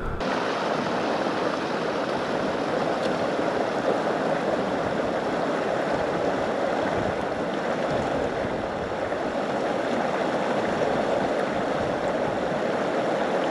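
A shallow river rushes steadily over rocks nearby.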